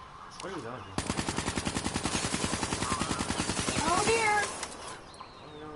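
Rapid automatic gunfire rattles close by.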